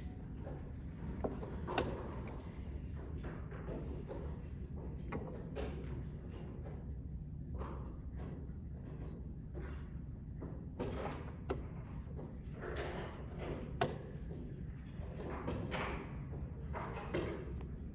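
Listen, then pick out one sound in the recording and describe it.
Chess pieces clack sharply on a board.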